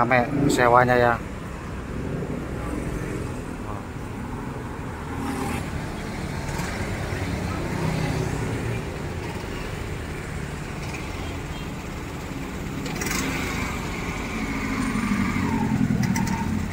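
A bus engine idles with a low, steady rumble nearby.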